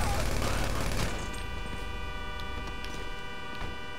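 A car door opens.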